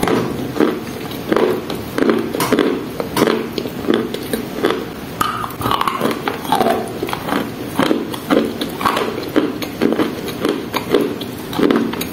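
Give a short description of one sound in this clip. A young woman chews and crunches ice loudly, close to a microphone.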